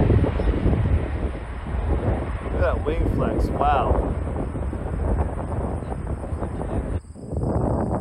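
A jet airliner roars loudly as it takes off.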